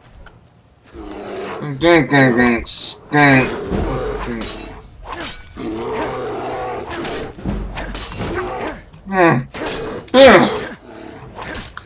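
A sword slashes and strikes.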